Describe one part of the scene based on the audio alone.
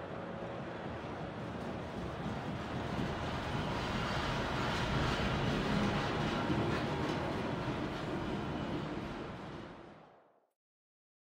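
Wind howls in a heavy snowstorm.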